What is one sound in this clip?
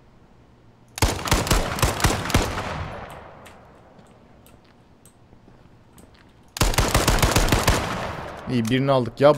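A rifle fires rapid bursts of shots that echo in a large hall.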